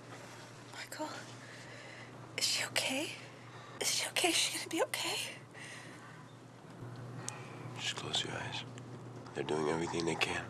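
A woman speaks weakly and softly, close by.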